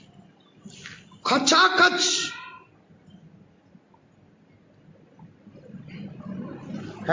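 A man preaches loudly and with fervour into a microphone.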